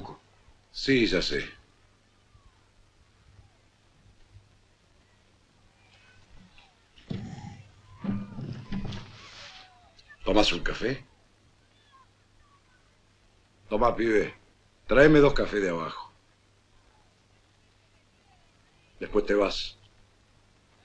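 Middle-aged men speak calmly in short exchanges, close by.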